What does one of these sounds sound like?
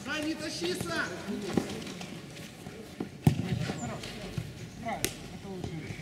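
Young men shout to each other outdoors during a football game.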